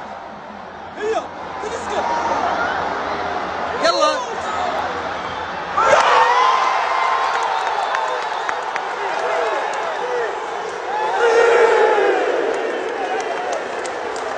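Fans shout and whoop close by.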